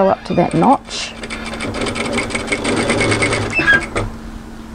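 A sewing machine runs and stitches in a quick, rattling burst.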